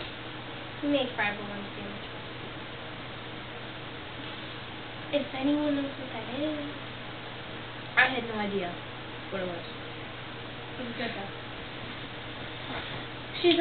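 Young women speak and laugh softly close by.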